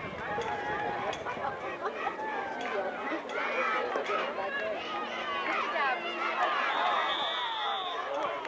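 A crowd of adults and children shouts and cheers outdoors.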